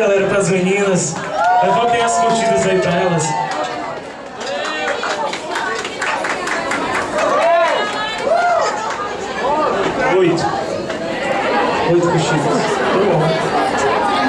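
A rock band plays loud music with electric guitars.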